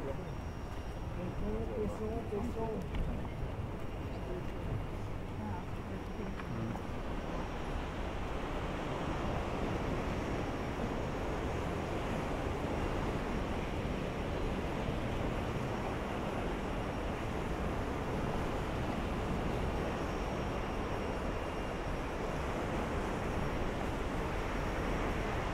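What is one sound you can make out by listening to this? Wind blows steadily outdoors, rumbling across the microphone.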